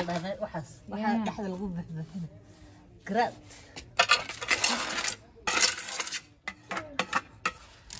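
A trowel scrapes across tiles.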